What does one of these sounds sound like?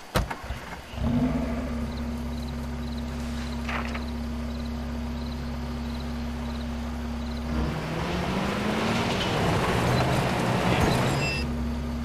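A car engine hums steadily, rising in pitch as it speeds up.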